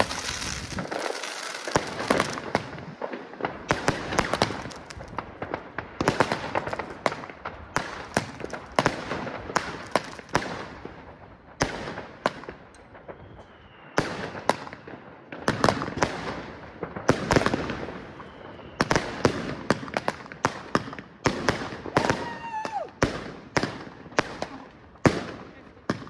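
Fireworks burst with loud bangs and crackles, close by.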